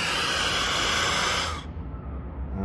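Gas hisses loudly from a hose fitting, then stops.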